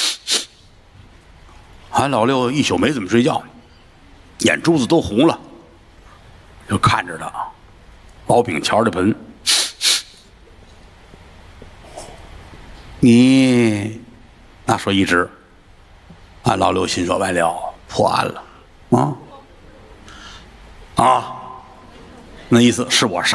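A middle-aged man speaks expressively into a microphone, in bursts with pauses.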